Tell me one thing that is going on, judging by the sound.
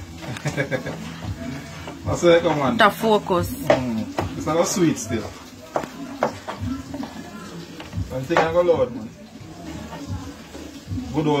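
A knife knocks on a cutting board.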